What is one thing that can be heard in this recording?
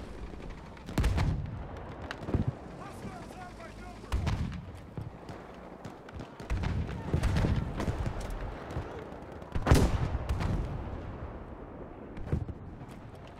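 A sniper rifle fires loud single shots that echo.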